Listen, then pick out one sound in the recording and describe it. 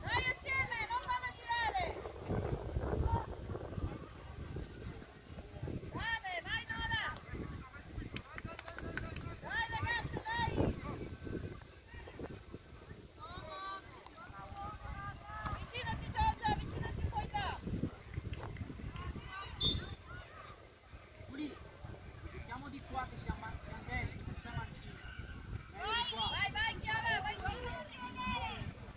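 Young women shout and call out across an open playing field.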